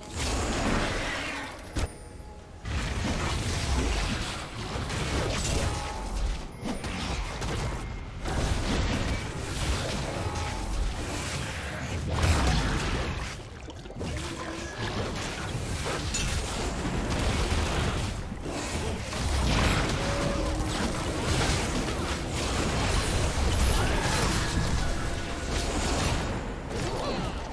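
Game spell effects whoosh and clash in a fight.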